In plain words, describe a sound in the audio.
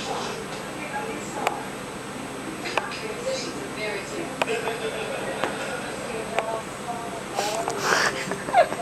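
Two cats scuffle and paw softly at each other.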